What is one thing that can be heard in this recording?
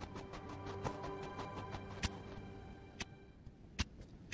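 Game music plays with a steady melody.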